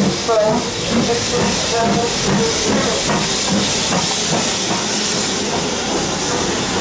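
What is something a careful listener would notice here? A steam locomotive chuffs as it pulls out of a station.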